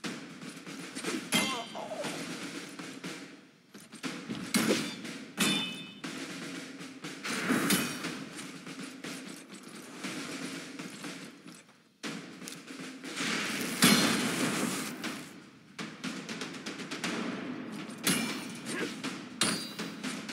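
Game sound effects of clashing blows and magic spells ring out in bursts.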